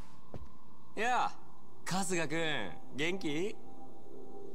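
A man calls out a casual greeting.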